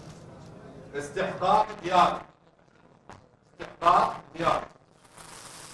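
A man reads out loudly through a microphone.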